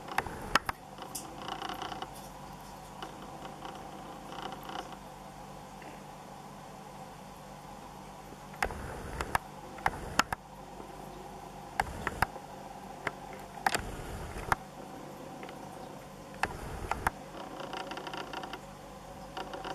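Water splashes softly as a turtle paddles at the surface.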